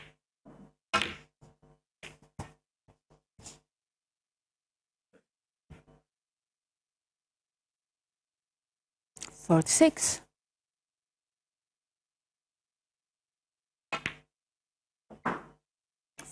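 Snooker balls clack against each other.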